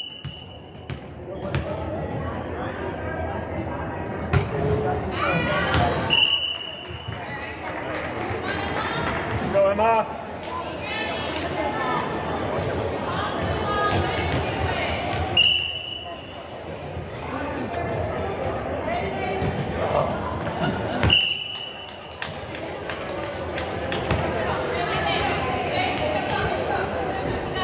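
Young girls chatter and call out across the hall.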